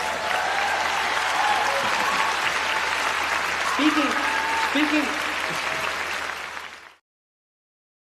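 A man laughs softly.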